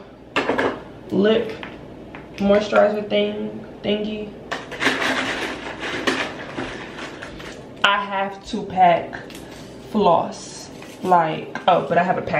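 Small plastic packaging crinkles in a woman's hands.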